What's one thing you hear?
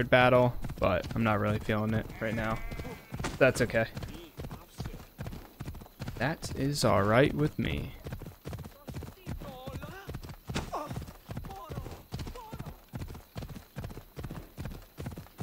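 A horse gallops with quick, steady hoofbeats.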